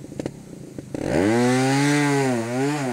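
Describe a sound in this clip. A motorcycle engine revs up loudly, rising and falling in pitch.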